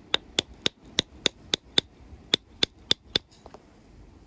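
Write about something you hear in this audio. An antler tool snaps flakes off a stone in quick, sharp clicks.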